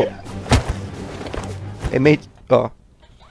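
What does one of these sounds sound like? Cartoonish fighting sounds clash and thud in quick bursts.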